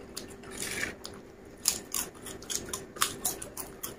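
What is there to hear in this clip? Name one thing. A man crunches crisp chips loudly close by.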